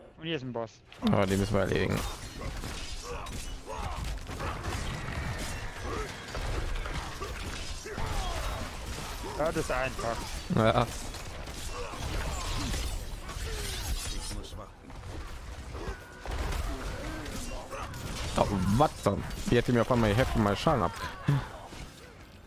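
Magic blasts crackle and boom in a fierce fight.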